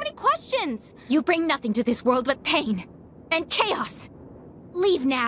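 A young woman speaks coldly and with animation.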